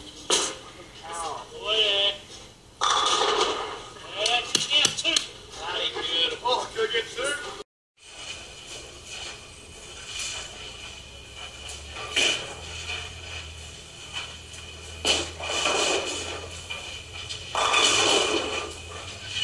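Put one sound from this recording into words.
A bowling ball rolls and rumbles down a lane.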